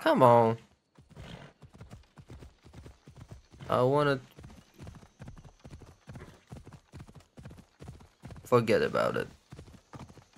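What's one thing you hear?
A horse's hooves beat quickly as it gallops.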